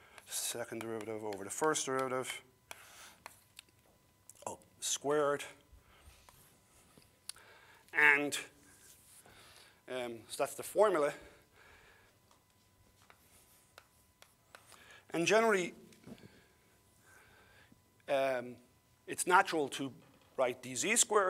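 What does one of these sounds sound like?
An older man lectures calmly in short phrases with pauses, heard through a microphone.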